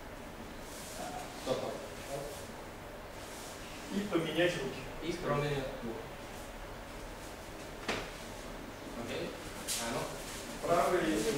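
A man instructs a group, speaking in bursts with pauses.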